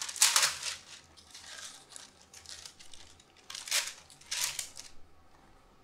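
Baking paper crackles as it is smoothed into a tray.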